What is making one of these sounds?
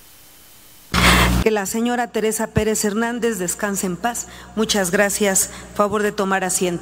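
A woman speaks calmly into a microphone, heard through a loudspeaker in a large hall.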